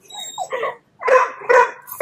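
A dog barks sharply.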